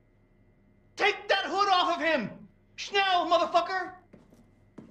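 A second man answers in a low, gruff voice.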